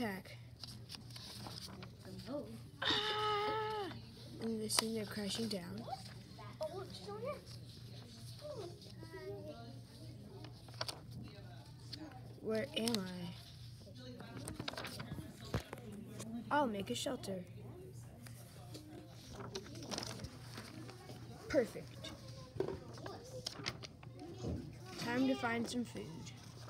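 Sheets of paper rustle and flip as they are handled.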